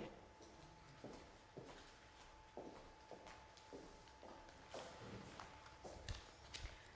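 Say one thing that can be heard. Footsteps click across a hard floor.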